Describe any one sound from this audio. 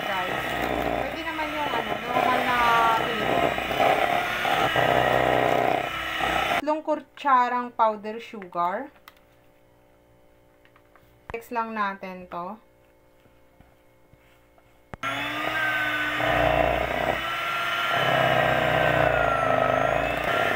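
An electric hand mixer whirs loudly as it beats in a metal bowl.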